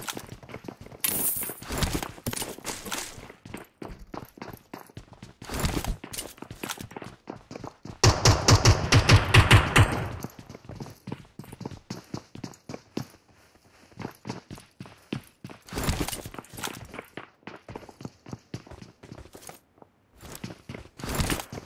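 Footsteps thud quickly across a hard floor and up stairs.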